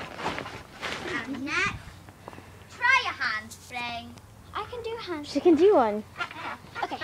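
A young girl speaks and squeals excitedly close by.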